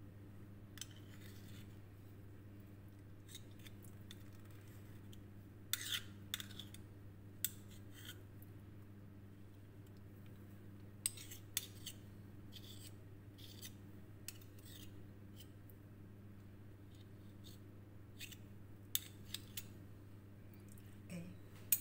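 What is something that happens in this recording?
Metal spoons scrape and clink against glass.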